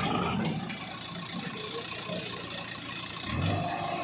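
A backhoe engine roars as its bucket scoops dirt.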